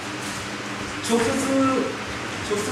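A middle-aged man speaks briefly and calmly.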